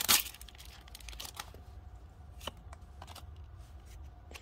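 A card slides and taps against another card.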